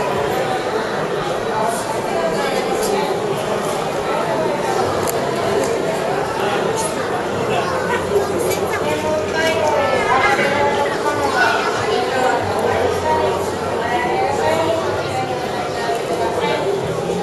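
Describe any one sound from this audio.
A crowd of men and women chatter nearby in a large echoing hall.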